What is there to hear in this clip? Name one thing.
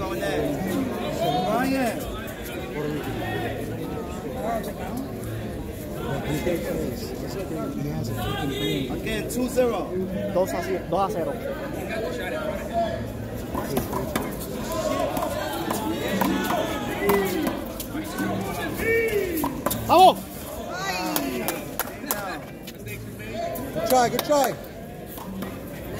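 Men talk and call out nearby, outdoors.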